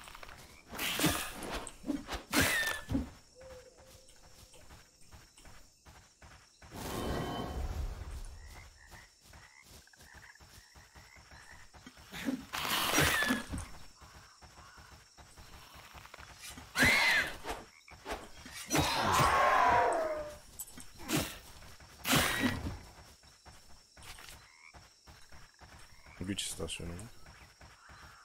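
Game creatures screech and growl in short bursts.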